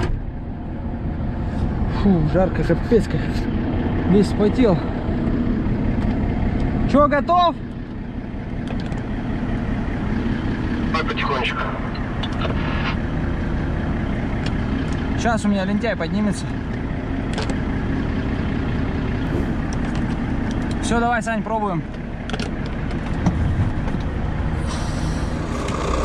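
A truck engine rumbles steadily while driving on a snowy road.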